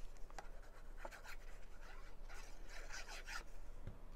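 A tube of glue is squeezed onto paper.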